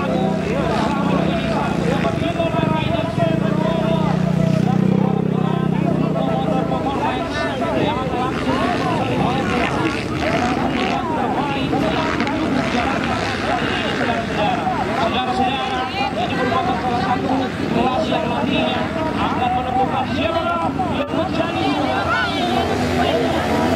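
Motorcycle engines roar and rev on a dirt track.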